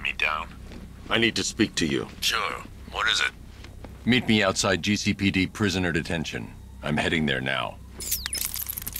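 A middle-aged man speaks calmly through a video call.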